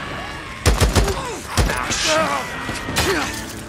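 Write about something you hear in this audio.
Creatures snarl and screech.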